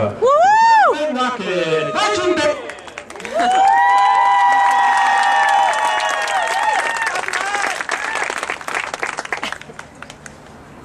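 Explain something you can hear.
A marching band plays brass loudly outdoors.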